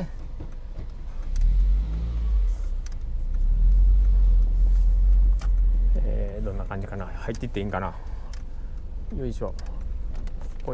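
A car engine rumbles low as the car drives slowly.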